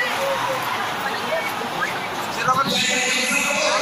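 Men nearby talk and call out loudly.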